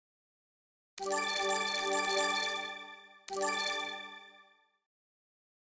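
A bright chime rings out in quick repeated notes.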